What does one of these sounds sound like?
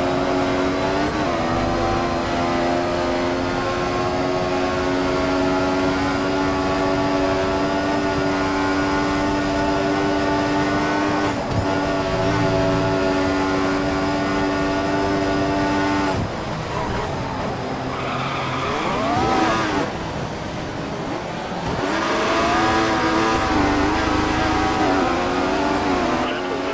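A racing car engine screams at high revs and shifts up through its gears.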